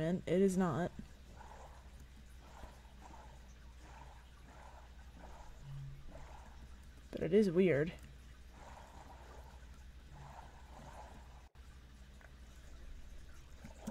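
Oars splash softly in water as a small boat is rowed.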